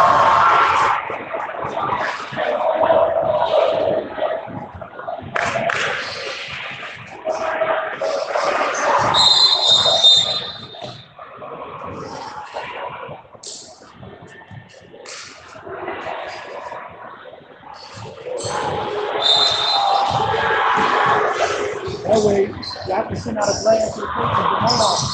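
Spectators chatter nearby in a large echoing gym.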